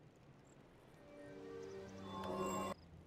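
A magic spell whooshes and chimes.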